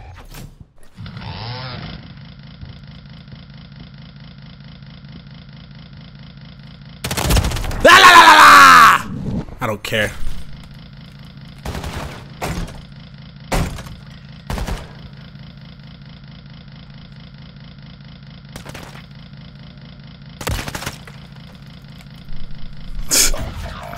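A chainsaw engine drones steadily.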